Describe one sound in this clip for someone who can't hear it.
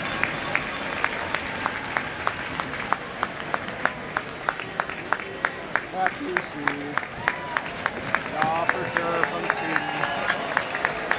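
Fans clap their hands in a steady rhythm.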